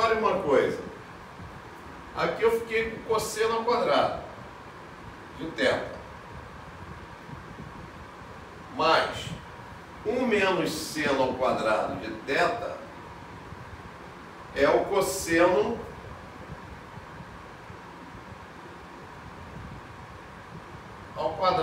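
A man speaks calmly in short phrases, close by.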